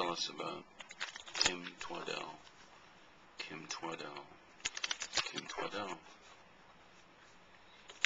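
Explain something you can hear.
Playing cards are shuffled by hand.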